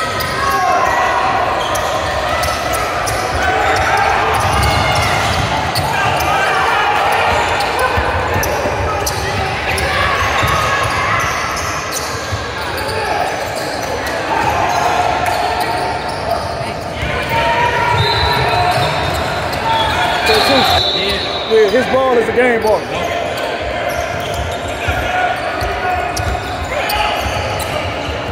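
A crowd of young people talks and calls out in an echoing hall.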